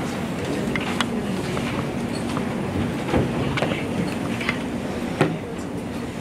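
Objects knock and clunk on a table.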